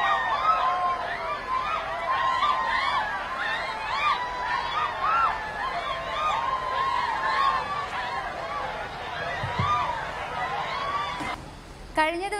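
A large crowd of women shouts and chants together outdoors.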